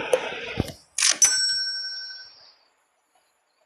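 A short chime sounds as a menu closes.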